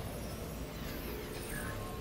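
Electric sparks crackle briefly.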